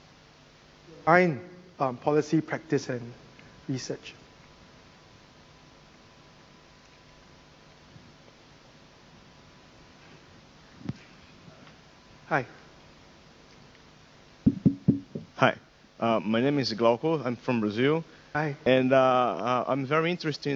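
A man speaks calmly into a clip-on microphone, with long pauses.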